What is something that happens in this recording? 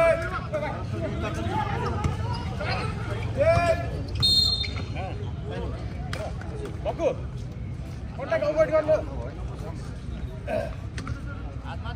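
A crowd of spectators chatters and cheers at a distance.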